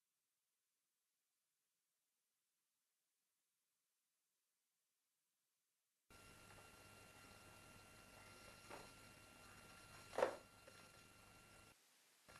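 Pages of a magazine rustle as a man turns them.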